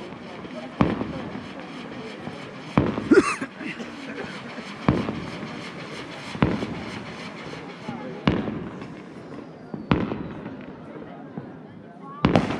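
Fireworks bang far off, each boom echoing outdoors.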